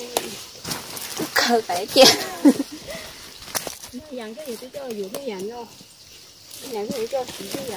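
Leafy plants rustle and snap as they are picked.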